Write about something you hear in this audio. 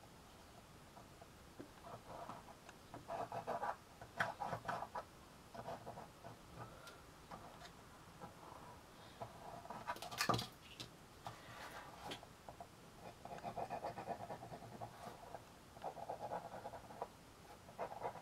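A pen scrapes lightly against cardboard.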